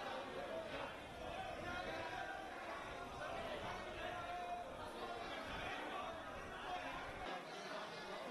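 A large crowd of men chants and cheers loudly.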